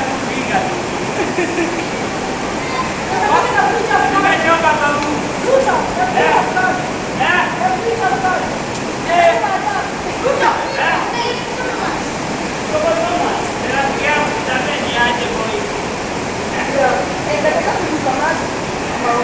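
Several men and women talk and call out nearby, their voices echoing.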